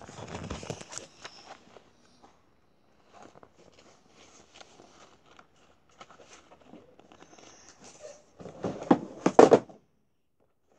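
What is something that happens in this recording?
Book pages rustle as they are flipped.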